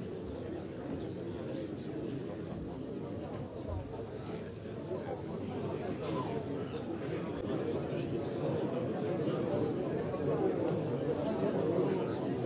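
A man talks quietly close by.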